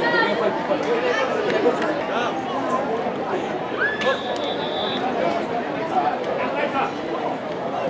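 Young men and women call out and chatter to each other outdoors.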